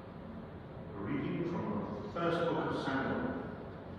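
An elderly man speaks calmly into a microphone in an echoing hall.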